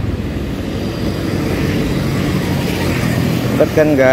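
A passing motorcycle drones by nearby.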